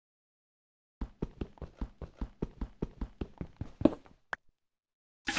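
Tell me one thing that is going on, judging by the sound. A pickaxe chips rapidly at hard stone.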